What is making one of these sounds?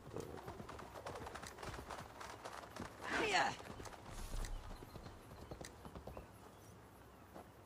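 A horse's hooves thud over soft ground and then clop on wooden planks.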